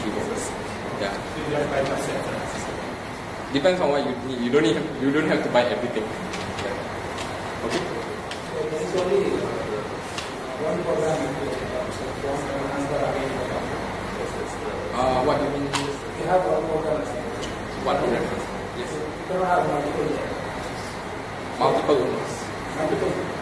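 A man speaks calmly to an audience in a room with a slight echo.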